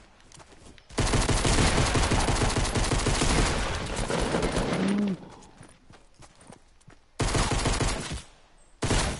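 Gunshots fire in loud rapid bursts.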